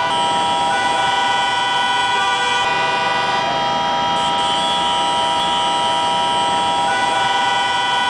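Many car horns honk in heavy traffic.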